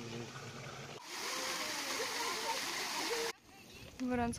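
A small waterfall splashes steadily onto rocks.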